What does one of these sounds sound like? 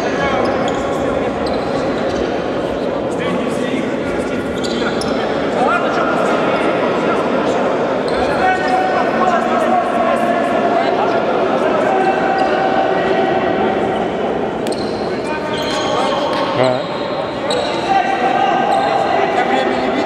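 A crowd murmurs and calls out throughout.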